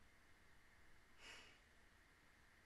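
A young woman laughs softly close to a microphone.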